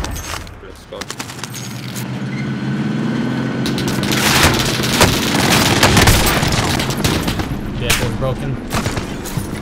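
A vehicle engine roars and rises in pitch as it drives.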